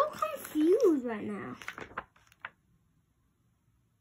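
A page of a book turns over with a papery rustle.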